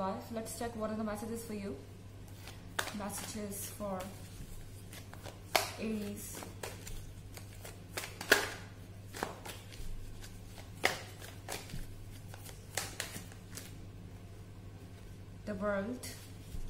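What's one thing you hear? Playing cards are shuffled and tapped, with soft clicks.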